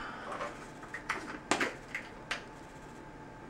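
A plastic bottle cap clicks and rattles open.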